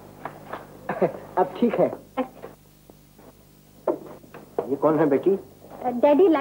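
A woman speaks, close by.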